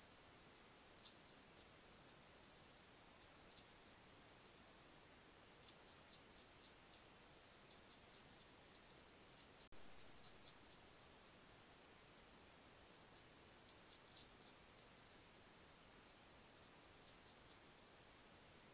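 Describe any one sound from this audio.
A hedgehog eats from a dish with soft, wet smacking and crunching sounds close by.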